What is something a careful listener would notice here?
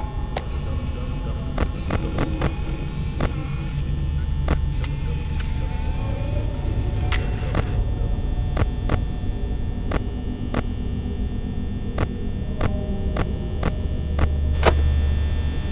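Sharp electronic clicks sound again and again.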